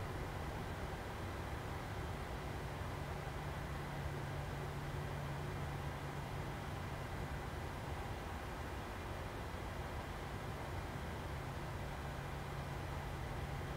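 An aircraft engine hums steadily, heard from inside the cockpit.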